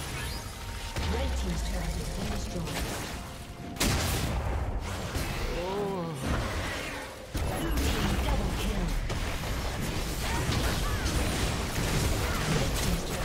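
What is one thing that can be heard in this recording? Game spell effects and hits crackle and clash.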